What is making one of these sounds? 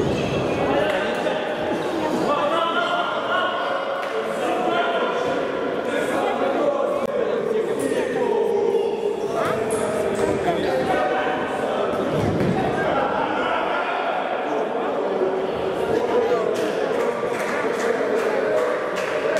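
A crowd of spectators shouts in an echoing sports hall.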